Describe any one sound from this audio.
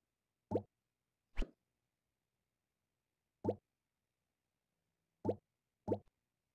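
Short bright pops from a game sound as items are picked and placed.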